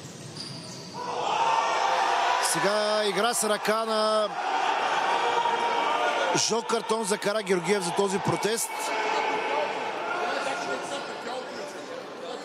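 Young men shout and cheer excitedly in a large echoing hall.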